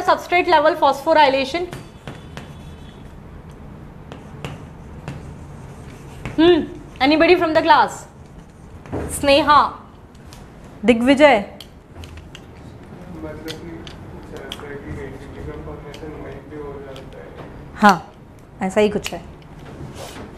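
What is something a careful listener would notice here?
A young woman speaks calmly into a microphone, explaining in bursts with pauses.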